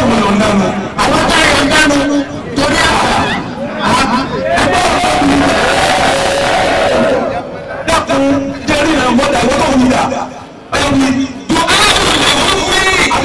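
A man chants loudly into a microphone, heard through a loudspeaker.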